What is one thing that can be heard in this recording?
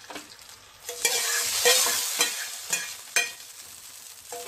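Hot spices sizzle as they are poured into a simmering pot.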